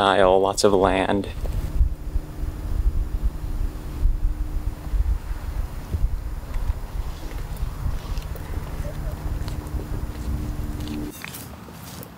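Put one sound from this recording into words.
Wind blows outdoors, rumbling against the microphone.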